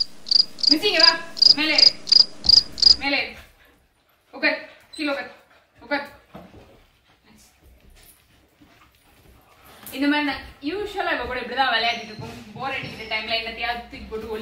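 A young woman talks and laughs nearby with animation.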